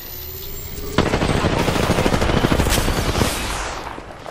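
A device hums and crackles with an electric charge.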